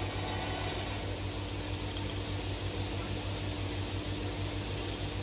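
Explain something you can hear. A woodworking machine hums and rumbles steadily close by.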